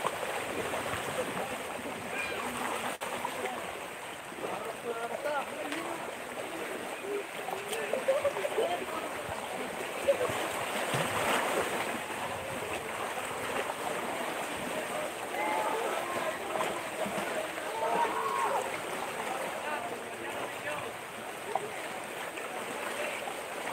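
Small waves wash and splash over rocks at the shore.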